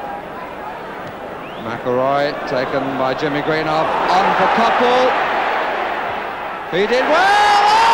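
A large crowd roars and cheers outdoors, swelling louder.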